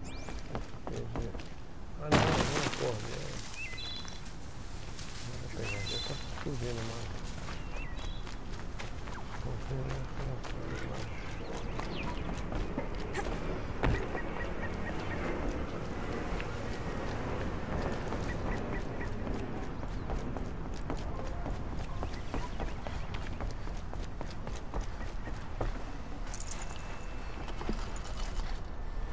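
Quick footsteps run over earth and wooden planks.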